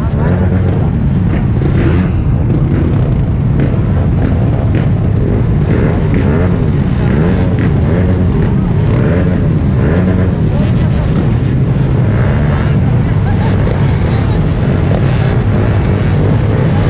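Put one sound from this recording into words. Motorcycle engines rev up and down nearby.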